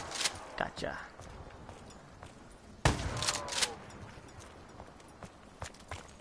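Gunshots boom in a video game.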